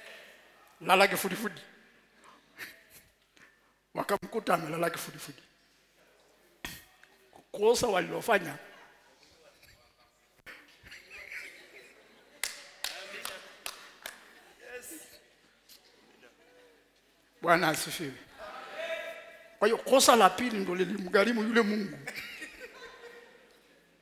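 A man preaches loudly and with animation through a microphone in a large echoing hall.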